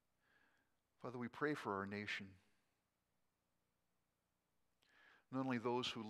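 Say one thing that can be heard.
An elderly man speaks slowly and calmly into a microphone in a large echoing room.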